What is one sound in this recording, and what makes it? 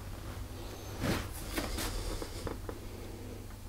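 A plastic piping bag crinkles and rustles in a hand.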